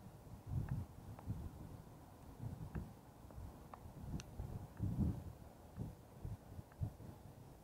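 Wind buffets a microphone outdoors in gusts.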